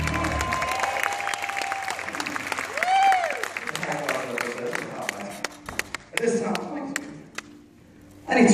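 A crowd cheers and claps in a large hall.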